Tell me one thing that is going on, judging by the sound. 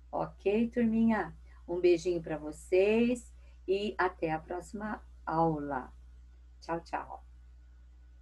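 An elderly woman speaks calmly through an online call.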